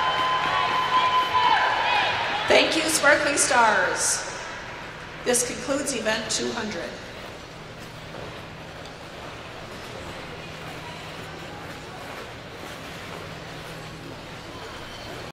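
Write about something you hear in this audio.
Ice skates scrape and glide across an ice rink in a large echoing hall.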